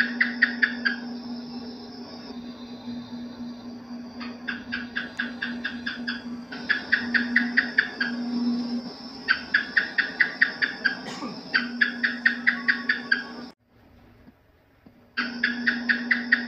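Geckos chirp in quick clicking bursts.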